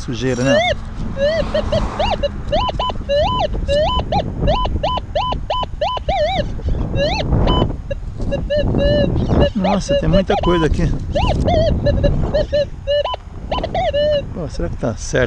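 A metal detector beeps and warbles in quick bursts.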